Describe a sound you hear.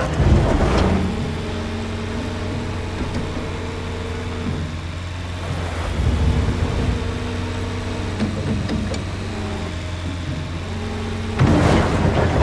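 Hydraulics whine as an excavator arm swings and lifts.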